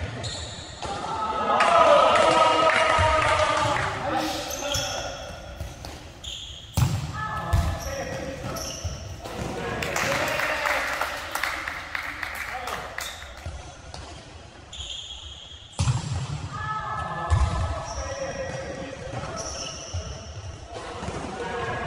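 A ball thumps as players kick it in an echoing hall.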